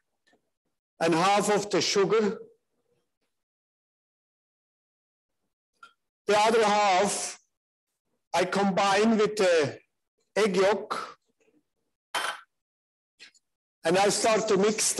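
A man speaks calmly in short phrases through a microphone, heard over an online call.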